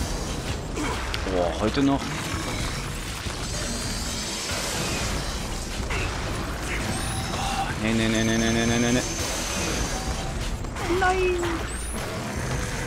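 A large creature growls and roars.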